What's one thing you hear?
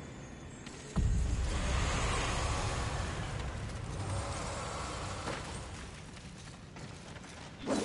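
Footsteps patter quickly on stone and gravel.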